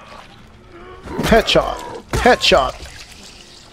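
Blunt weapon blows thud against a body.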